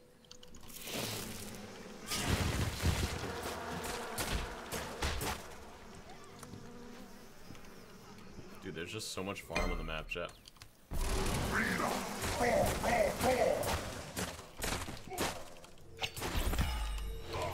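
Game fighting sounds and spell effects crackle and whoosh.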